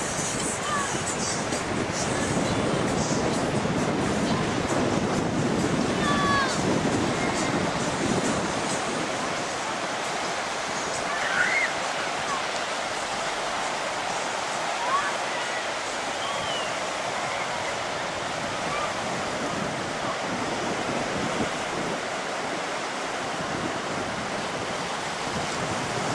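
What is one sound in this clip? Waves break and wash steadily onto a rocky shore.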